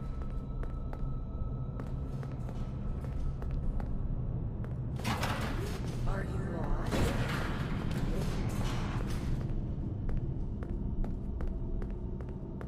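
Footsteps tap on a hard tiled floor.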